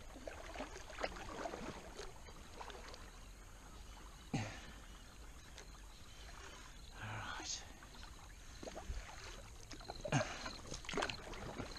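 A paddle knocks against the hull of a plastic kayak.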